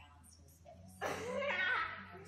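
A dog growls.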